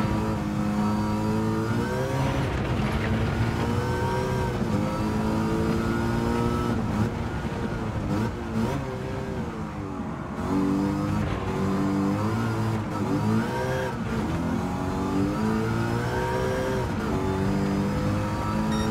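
A racing car engine roars, revving up and down through the gears.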